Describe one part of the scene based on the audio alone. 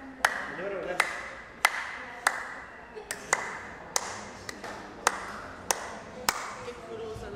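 Women clap their hands in a slow, steady rhythm.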